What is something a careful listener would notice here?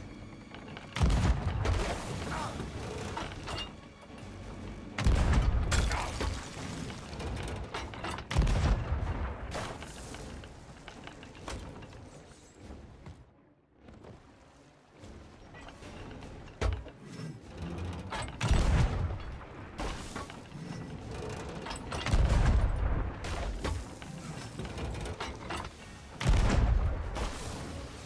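A cannon fires with a deep boom, again and again.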